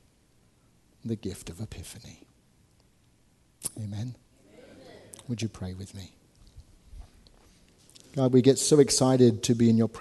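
A man speaks calmly and earnestly through a microphone, pausing between phrases.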